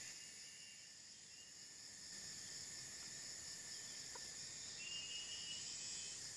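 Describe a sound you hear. A bird chirps in short high calls.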